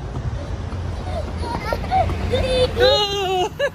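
A young girl shouts and squeals excitedly.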